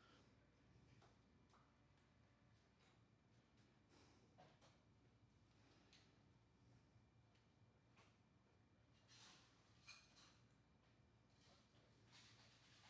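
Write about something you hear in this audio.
A paintbrush swishes softly against canvas.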